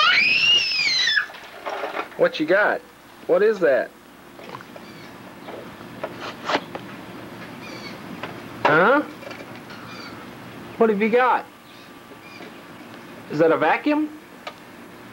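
A toddler babbles and squeals close by.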